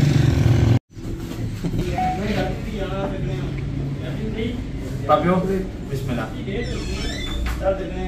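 Men talk and chatter nearby in a room.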